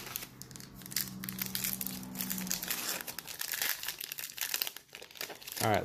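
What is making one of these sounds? A foil wrapper crinkles and tears as hands pull it open.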